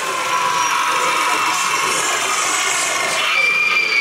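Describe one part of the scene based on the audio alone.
A monstrous figure growls and cackles loudly through a loudspeaker.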